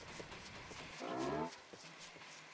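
A large horned beast gives a short, deep grunting low.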